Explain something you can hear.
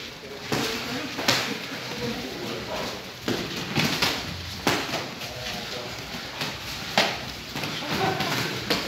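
Several men talk and call out nearby.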